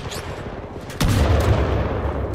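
A heavy metal crate lands with a deep boom.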